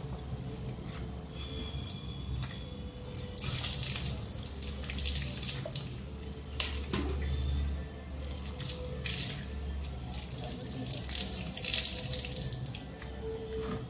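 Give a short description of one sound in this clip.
Water pours from a mug and splashes onto the ground.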